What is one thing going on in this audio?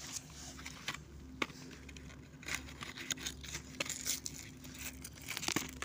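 A cardboard box rattles as a hand shakes it.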